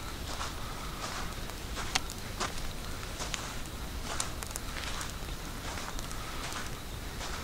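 Footsteps crunch steadily along a dirt path.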